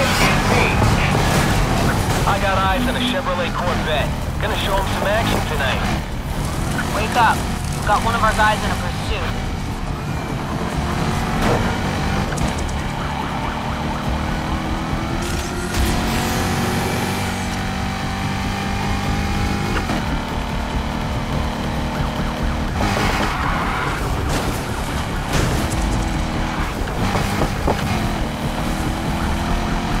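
A sports car engine roars and revs as the car speeds along.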